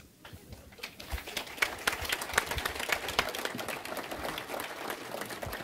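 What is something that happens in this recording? An audience claps in a large hall.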